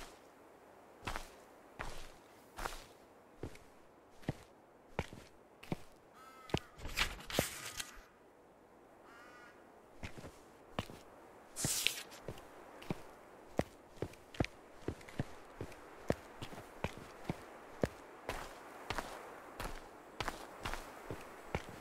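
Footsteps crunch steadily through grass and undergrowth.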